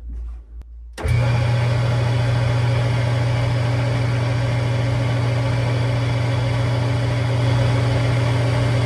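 A lathe motor starts and hums steadily.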